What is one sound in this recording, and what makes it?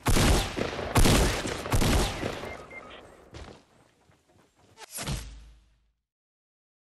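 Loud gunshots ring out in bursts, echoing briefly.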